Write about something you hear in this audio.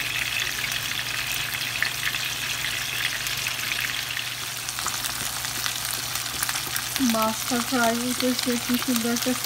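Fish fries in hot oil with a steady sizzle and crackle.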